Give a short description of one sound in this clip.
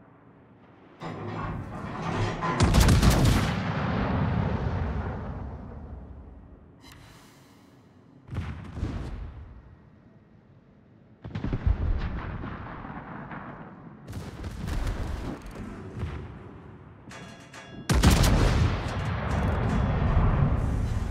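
Heavy naval guns fire in loud, booming blasts that rumble away.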